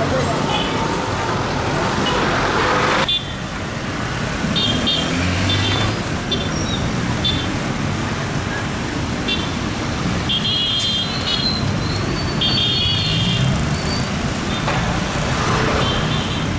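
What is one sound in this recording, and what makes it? A motorcycle engine putters as it rides closer.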